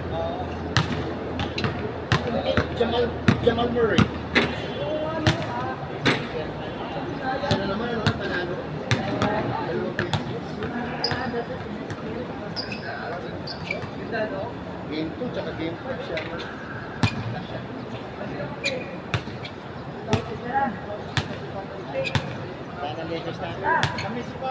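Men call out and talk to each other during a game, outdoors.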